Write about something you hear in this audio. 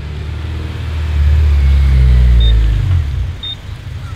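A car drives past with a deep exhaust roar that fades away.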